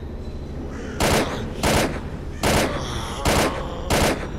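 A rifle fires several loud shots, ringing out.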